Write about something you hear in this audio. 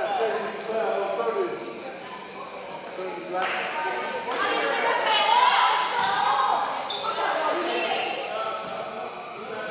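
Young women shout and call out to each other in an echoing gym.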